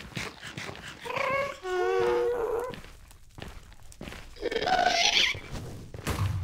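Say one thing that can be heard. A ghost-like creature lets out high, wailing cries.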